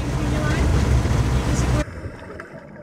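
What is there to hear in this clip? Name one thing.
A truck engine rumbles, heard from inside the cab while driving.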